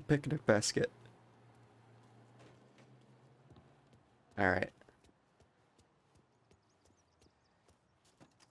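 Footsteps tap on a hard floor and pavement.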